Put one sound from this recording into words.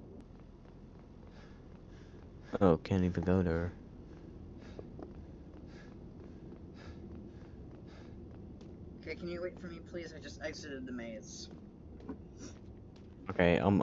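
Footsteps crunch steadily over snow.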